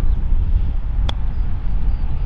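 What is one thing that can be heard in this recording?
A golf club strikes a ball with a crisp click.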